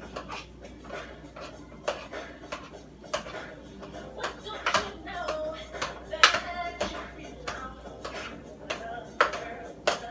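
A spoon clinks and scrapes against a metal pot.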